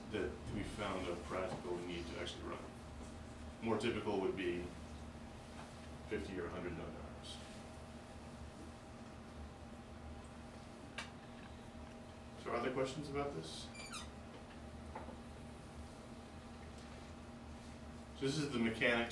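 A man speaks calmly and pauses often, in a room with some echo.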